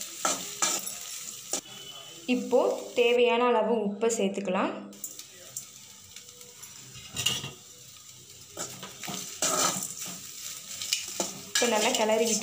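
A metal spatula scrapes and clanks against a pan.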